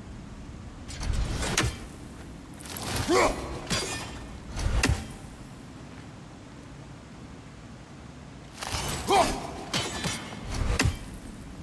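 Heavy blows land with loud thuds and clangs.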